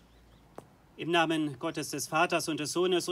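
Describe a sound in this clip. A man speaks calmly into a microphone, heard close.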